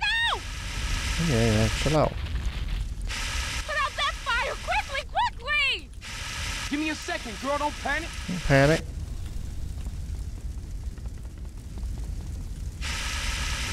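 A fire extinguisher sprays with a steady hiss.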